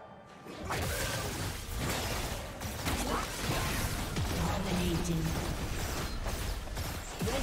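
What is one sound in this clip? Game spells burst and clash in a fast fight.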